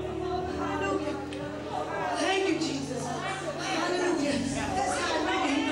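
A choir of women sings together over a microphone.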